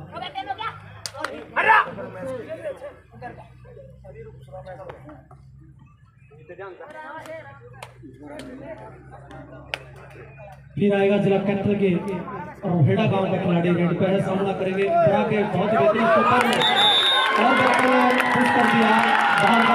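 A crowd of young men shout and cheer outdoors.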